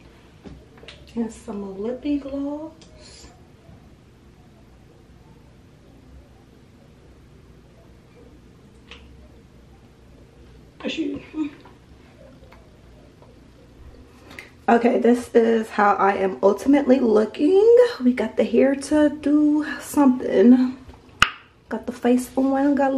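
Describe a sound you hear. A young woman speaks close by, casually and with animation.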